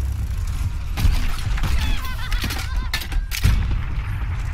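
Video game weapon fire and explosions boom.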